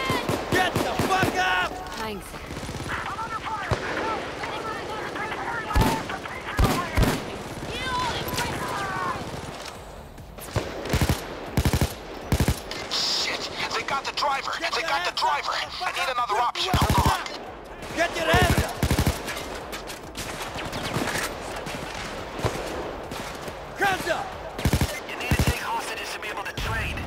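Gunshots fire in short bursts, close by.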